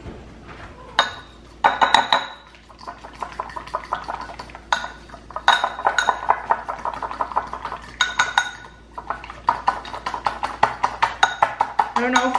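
A spoon whisks and clinks quickly against a ceramic bowl.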